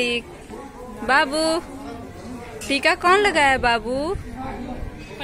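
A young girl speaks in a high voice close by.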